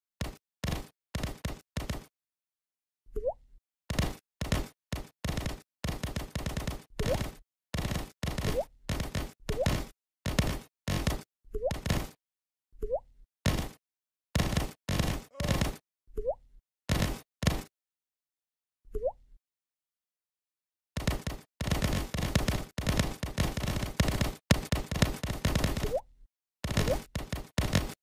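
Game gunshots crackle in quick bursts.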